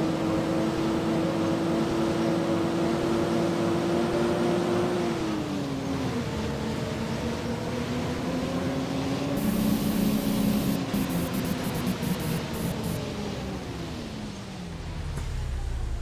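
A bus engine drones steadily and then winds down as the bus slows.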